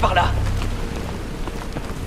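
A fire crackles and burns nearby.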